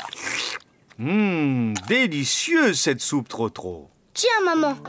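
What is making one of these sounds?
A young boy speaks cheerfully and animatedly.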